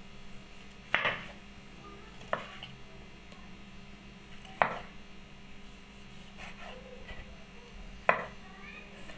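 A knife thuds against a wooden cutting board as it slices through tomatoes.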